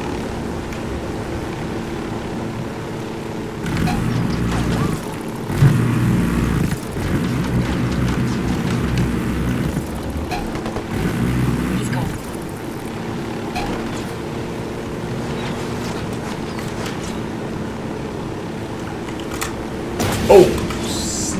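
A helicopter's engine whines throughout.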